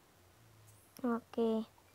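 A bright two-note game chime sounds.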